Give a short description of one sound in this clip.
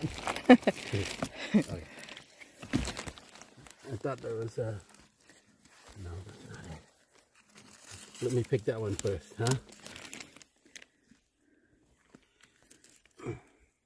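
Dry twigs and leaves crackle and snap under hands.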